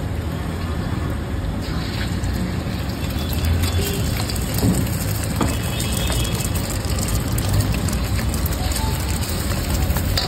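Oil sizzles in a hot pan.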